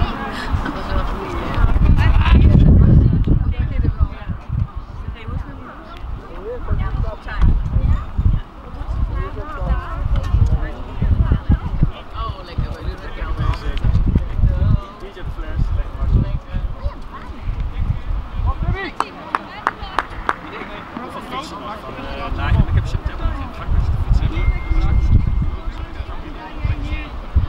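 Young players talk and call out across an open field.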